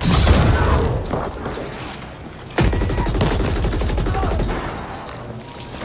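Gunfire and explosions crack and boom loudly, then die down.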